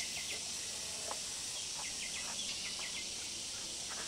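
A wooden pole knocks against a wooden frame.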